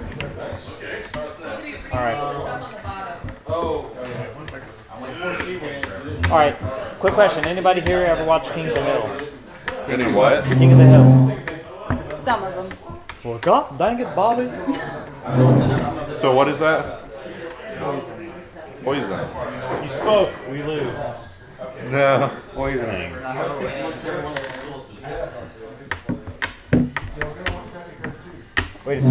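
Several men talk and laugh together nearby.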